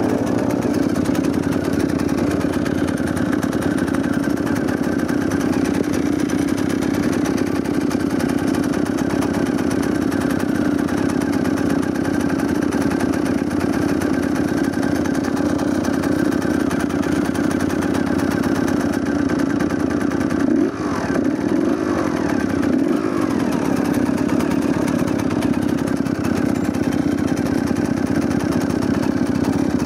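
A dirt bike engine roars steadily close by.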